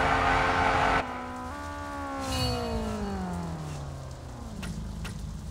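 An engine sound drops sharply in pitch and fades.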